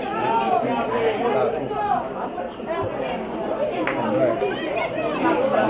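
Children shout and call out to each other outdoors on a football pitch.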